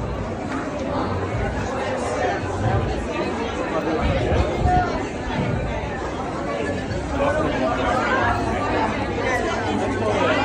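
A crowd of people chatter all around in a busy, echoing hall.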